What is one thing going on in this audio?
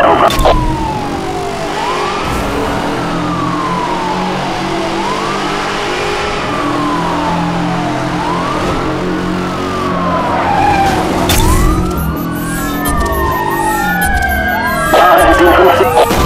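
A powerful car engine roars at high speed.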